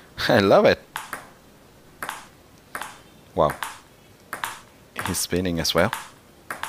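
A table tennis ball clicks against a paddle and bounces on a table.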